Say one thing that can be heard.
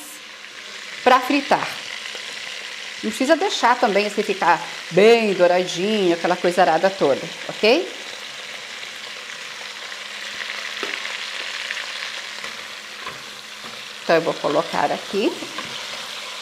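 A middle-aged woman talks calmly into a microphone.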